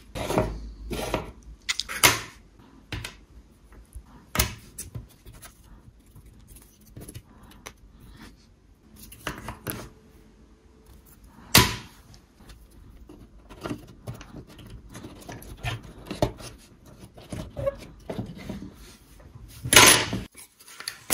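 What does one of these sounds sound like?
Wooden pieces tap and scrape on a wooden table.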